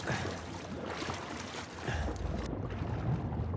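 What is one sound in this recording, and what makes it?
Stormy waves crash and hiss.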